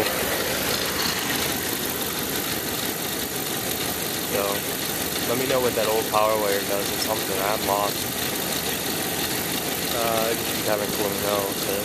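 A car engine idles with a steady hum.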